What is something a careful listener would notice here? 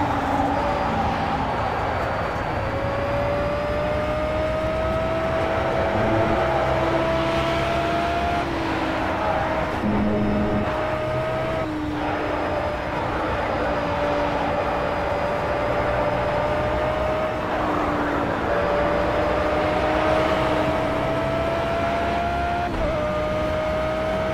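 Tyres hiss and rumble on the track.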